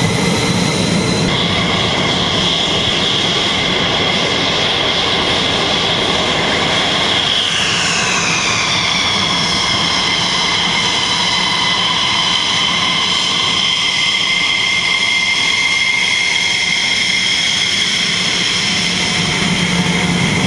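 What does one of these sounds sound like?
A jet engine whines loudly and steadily close by.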